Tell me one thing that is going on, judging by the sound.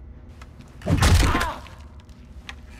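A wooden chair topples and crashes onto a hard floor.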